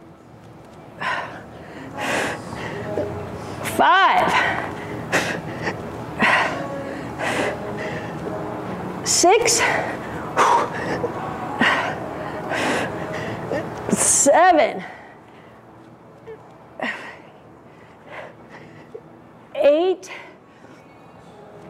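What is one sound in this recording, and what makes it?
A young woman breathes hard in short, sharp puffs.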